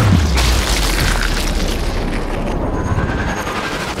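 A bullet thuds into a body.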